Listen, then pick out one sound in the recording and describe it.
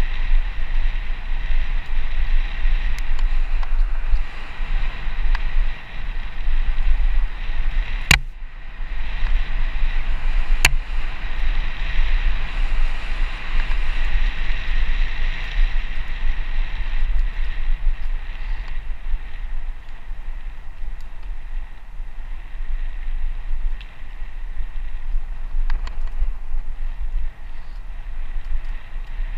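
Wind rushes and buffets steadily outdoors.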